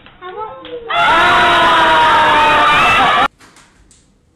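Children laugh and shriek loudly.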